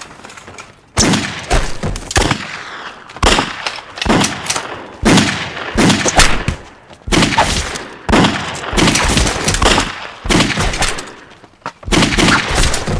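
Gunshots fire in loud, repeated bursts.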